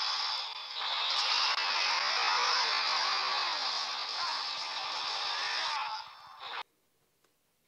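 Loud fighting game sound effects and blasts play from a small handheld speaker, then cut off abruptly.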